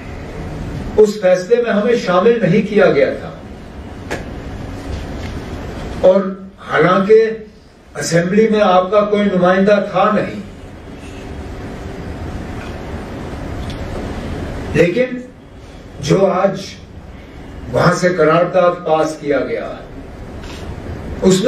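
A middle-aged man speaks firmly into a microphone, in bursts with pauses.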